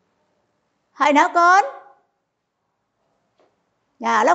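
A middle-aged woman speaks clearly into a clip-on microphone, in short phrases.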